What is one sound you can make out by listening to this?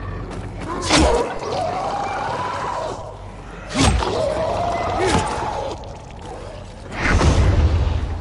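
A heavy blow thuds.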